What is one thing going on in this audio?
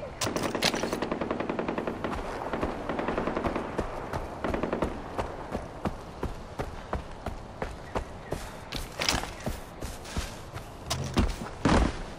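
Footsteps crunch on a gravel path at a steady pace.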